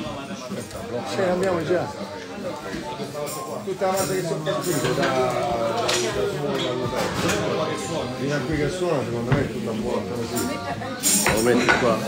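A man argues loudly and with agitation close by.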